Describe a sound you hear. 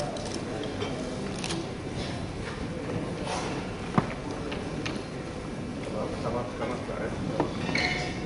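A man speaks loudly in a large hall.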